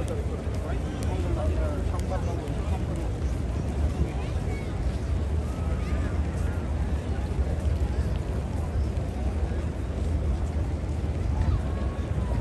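Many footsteps shuffle nearby.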